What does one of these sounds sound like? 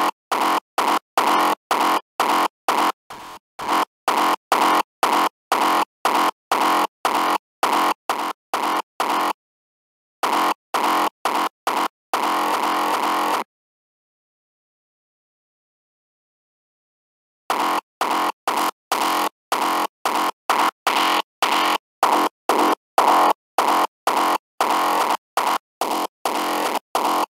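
A pulsing electronic beat plays in quick, even bursts.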